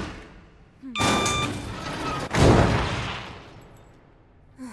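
A metal shutter rattles loudly.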